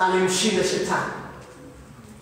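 A man speaks through a microphone in a reverberant hall.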